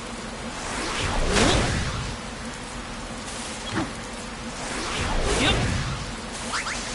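Rocks shatter and scatter with a loud crash.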